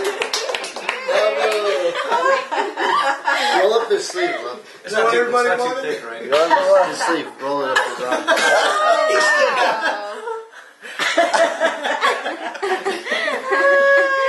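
A woman talks cheerfully close by.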